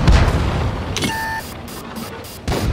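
A shell explodes with a sharp bang against stone.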